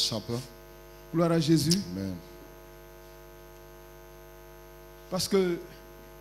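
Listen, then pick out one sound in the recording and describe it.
A man speaks through a microphone in short, spaced phrases.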